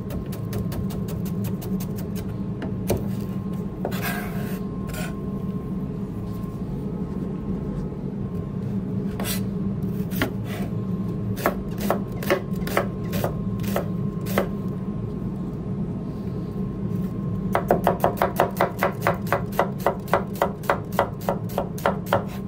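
A knife chops onions on a cutting board with quick, rhythmic taps.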